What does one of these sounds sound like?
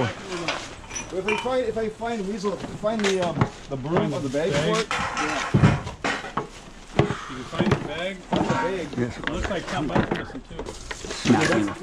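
A wooden cabinet knocks and scrapes as it is moved.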